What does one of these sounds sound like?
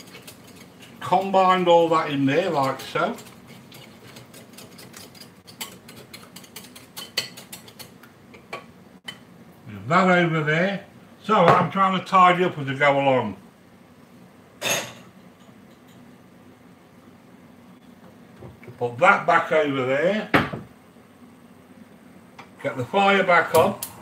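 A fork clinks against a glass bowl while stirring.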